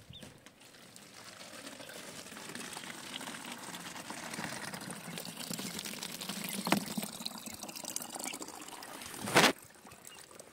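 Water pours in a thin stream and splashes into a bottle.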